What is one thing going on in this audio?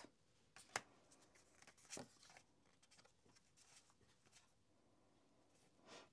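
Playing cards rustle and slap softly as they are shuffled.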